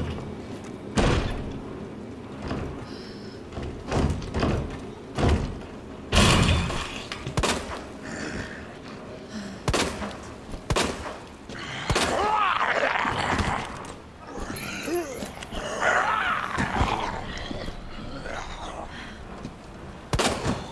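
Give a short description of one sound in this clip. A handgun fires loud shots, one at a time.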